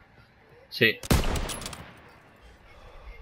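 A rifle fires a loud shot that echoes away.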